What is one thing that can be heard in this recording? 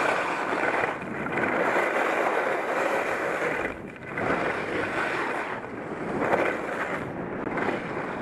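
Wind rushes past a helmet microphone.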